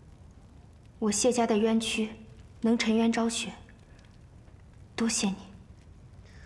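A young woman speaks softly and earnestly nearby.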